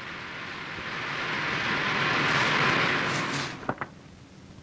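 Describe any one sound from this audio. A car drives up on gravel with its engine running.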